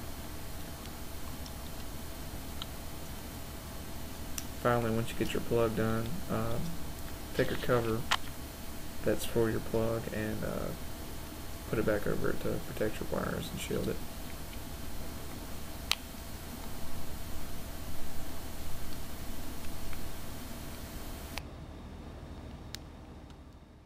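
Plastic parts of a plug click and rattle as they are handled.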